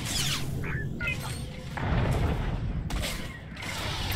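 Blasters fire in quick bursts.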